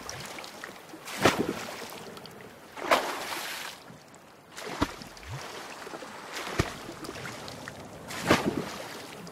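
A paddle splashes through water in steady, regular strokes.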